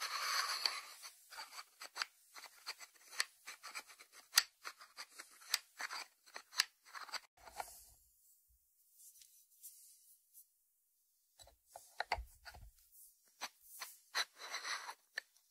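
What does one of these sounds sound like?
A ceramic lid clinks as it is lifted off and set back on its dish.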